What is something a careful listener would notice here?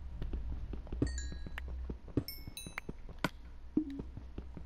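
A pickaxe chips at stone with sharp knocks.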